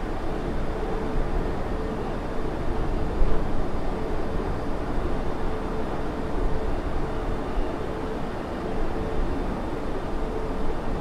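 Jet engines roar steadily as an airliner cruises.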